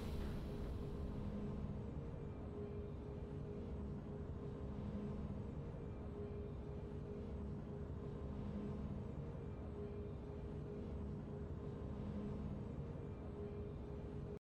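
Soft, low game music pulses quietly and steadily.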